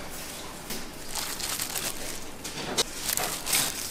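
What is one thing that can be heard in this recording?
Leafy greens drop into a bowl.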